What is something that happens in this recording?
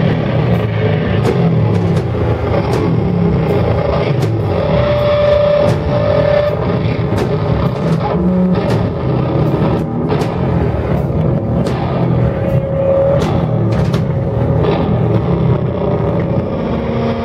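A loud band plays heavy, distorted rock.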